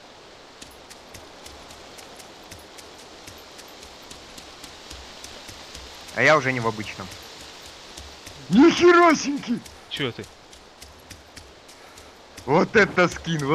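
Footsteps patter quickly on forest ground.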